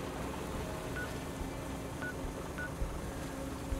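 A handheld device gives short electronic beeps.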